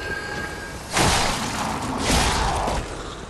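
A sword slashes and strikes with a loud impact.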